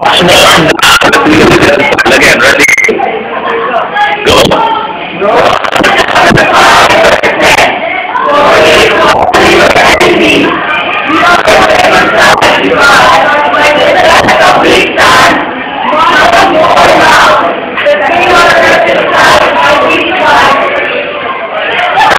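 A group of teenagers sings and chants loudly together.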